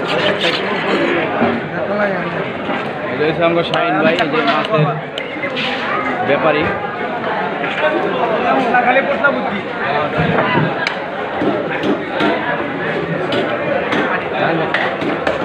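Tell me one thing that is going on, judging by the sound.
A crowd of men talk loudly all around, close by.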